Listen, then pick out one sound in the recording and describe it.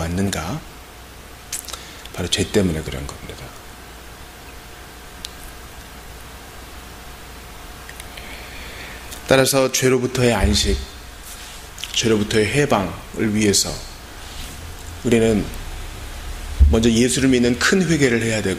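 A man speaks calmly through a microphone in a room with some echo, pausing between phrases.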